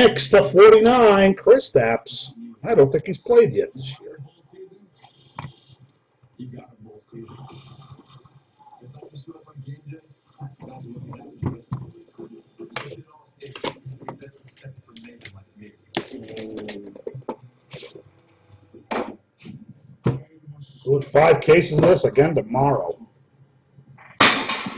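Cards rustle and click as they are handled.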